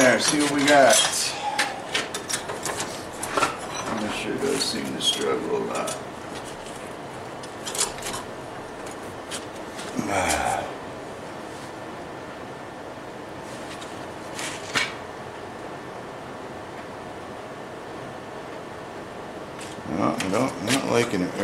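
Metal tools clink and clatter.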